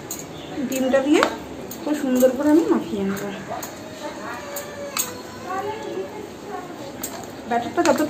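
Hands squish and mix soft food in a bowl.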